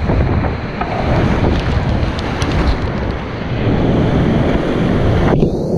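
Water splashes hard over a kayak.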